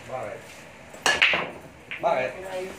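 Pool balls crack apart sharply as a break shot scatters the rack.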